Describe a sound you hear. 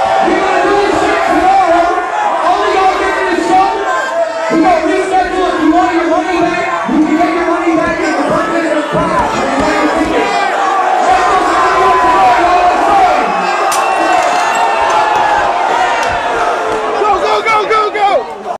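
A dense crowd of people shouts and cheers.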